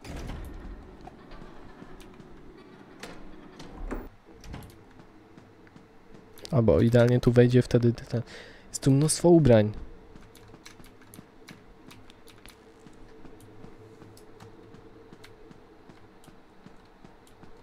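Footsteps tap lightly on a wooden floor.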